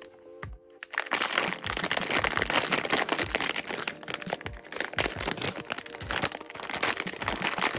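A plastic mailer bag crinkles and rustles as hands handle it.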